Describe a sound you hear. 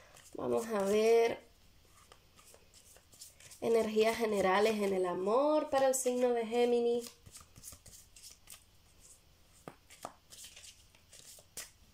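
Cards shuffle with soft, quick shuffling sounds.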